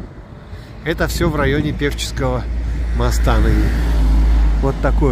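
A van drives past close by with a low engine rumble.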